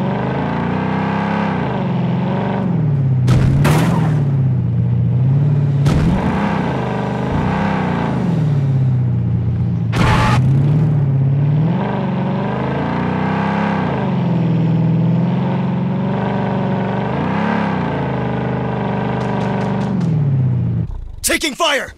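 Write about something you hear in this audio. An armoured off-road vehicle's engine drones, its pitch rising and falling as it drives over rough ground.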